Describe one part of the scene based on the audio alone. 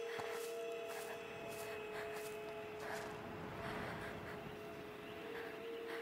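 Footsteps shuffle softly over dirt and dry leaves.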